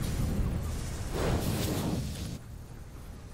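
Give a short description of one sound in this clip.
A power tool hisses and roars in a short burst.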